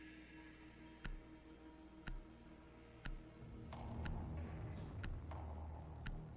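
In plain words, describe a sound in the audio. A countdown timer ticks sharply once every second.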